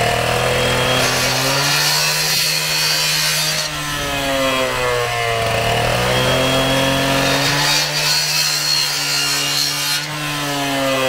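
A saw blade grinds through plastic pipe.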